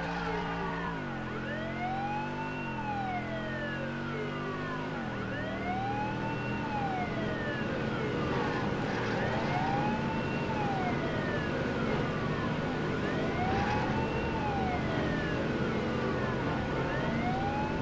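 A police siren wails up and down throughout.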